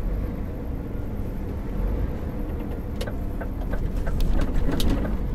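A vehicle engine rumbles low and steady from inside the cab.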